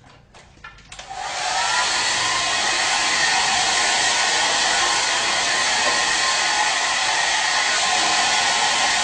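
Hair dryers blow with a loud, steady roar.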